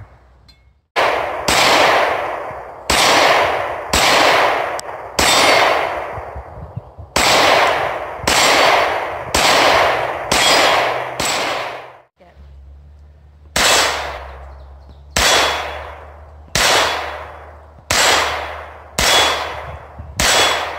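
A pistol fires shot after shot outdoors, each loud bang echoing and fading.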